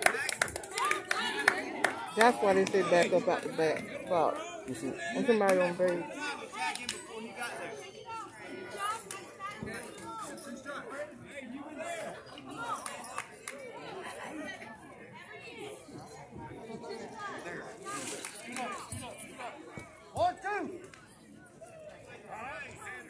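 Children and adults chatter and call out close by outdoors.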